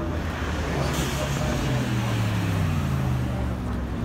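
A third sports car engine roars up and drives past close by.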